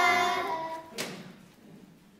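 Children clap their hands once.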